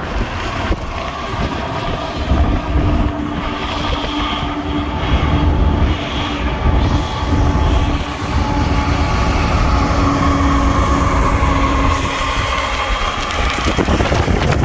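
Diesel freight locomotives rumble past with a droning engine hum.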